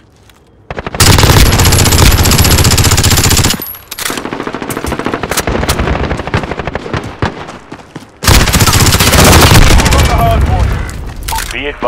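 Automatic gunfire rattles in rapid bursts, loud and close.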